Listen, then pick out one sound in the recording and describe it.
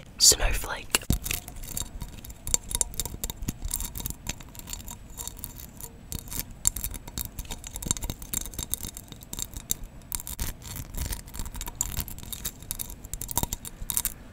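Glittery tinsel crackles and rustles close to a microphone.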